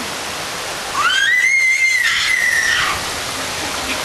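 A woman screams while sliding down a steep waterslide.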